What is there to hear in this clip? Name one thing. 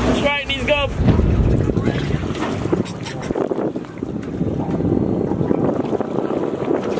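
Wind blows and waves splash against a boat outdoors.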